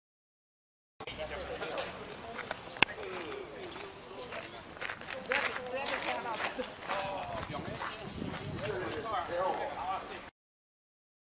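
Men talk among themselves nearby in a crowd outdoors.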